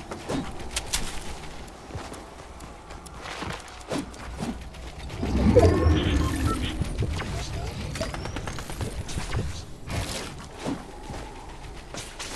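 Wall pieces snap into place with quick clacks.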